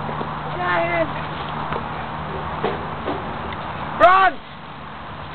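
A young man calls out loudly close by.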